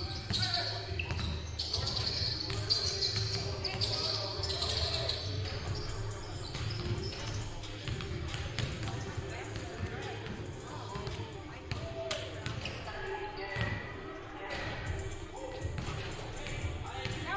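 Basketballs bounce on a hard wooden floor in a large echoing hall.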